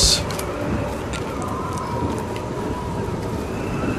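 A fire crackles and burns nearby.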